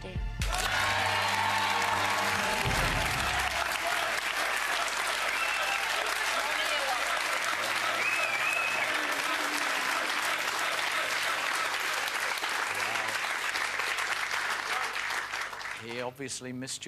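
A studio audience claps and cheers loudly.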